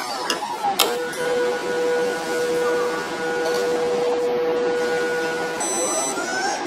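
The pump of an automatic blood pressure monitor hums as it inflates the cuff.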